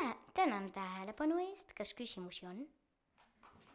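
A young girl speaks clearly through a headset microphone.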